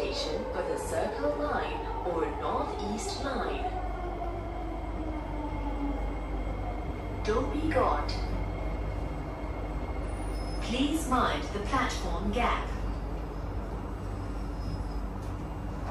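A train rumbles steadily along the track.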